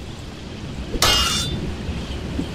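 Steel swords clash with a metallic ring.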